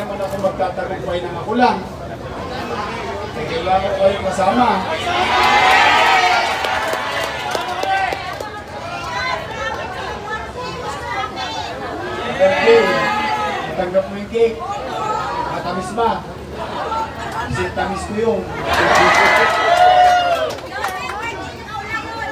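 A crowd of people chatters and murmurs.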